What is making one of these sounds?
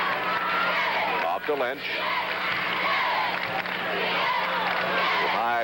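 A crowd cheers and roars in a large echoing arena.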